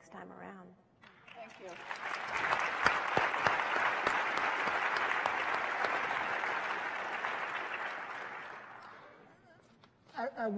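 Hands clap in loud, steady applause that slowly fades.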